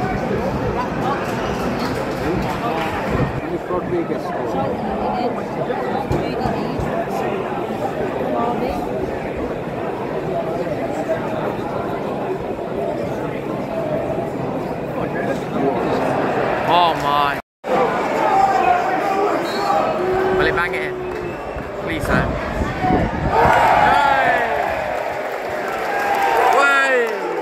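A large crowd chatters and calls out in an open stadium.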